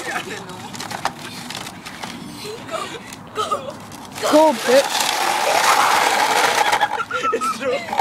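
Plastic wheels scrape and rattle over icy ground.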